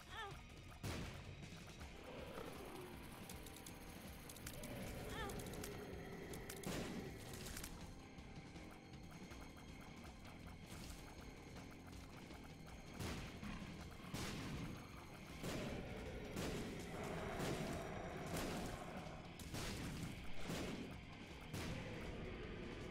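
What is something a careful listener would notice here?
Game sound effects of shots and splats thud and burst again and again.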